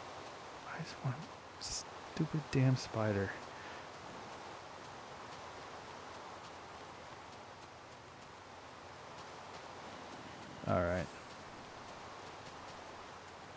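Rain falls steadily with a soft hiss.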